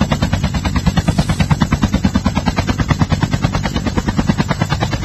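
A helicopter's rotor chops rapidly and steadily close by.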